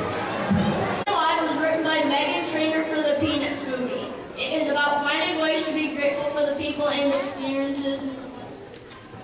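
A young boy sings through a microphone.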